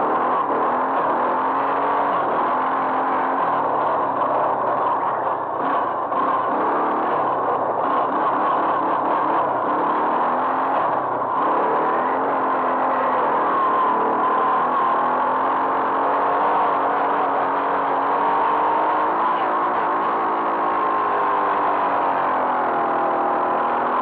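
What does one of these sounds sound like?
A quad bike engine revs loudly and changes pitch as the bike rides along.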